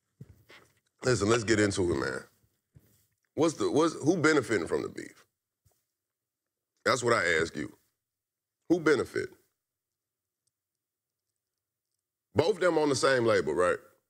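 A young man speaks calmly and casually, close by, in short bursts with pauses.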